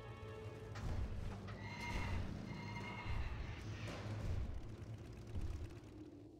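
Magic spells whoosh and chime in a fantasy battle.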